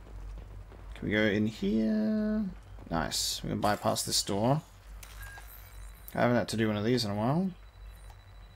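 A man talks into a close microphone with animation.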